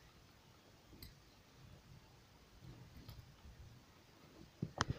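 Small metal tweezers tick faintly against a wire and beads.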